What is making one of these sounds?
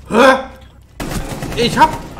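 A rifle fires a burst of shots close by.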